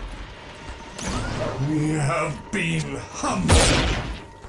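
Creatures growl and snarl in a fight.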